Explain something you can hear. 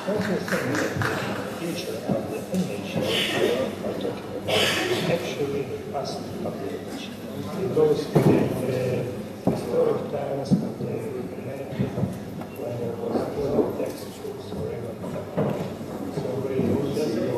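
A middle-aged man speaks into a microphone with animation.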